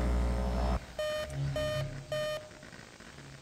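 An electronic device beeps in short, even pulses.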